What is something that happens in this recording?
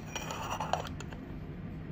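A ceramic lid clinks against a cup.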